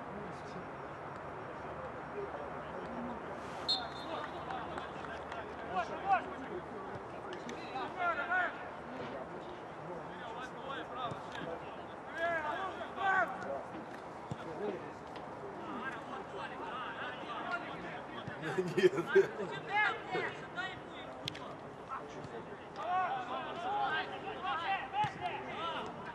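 Men shout and call to each other across an open outdoor field.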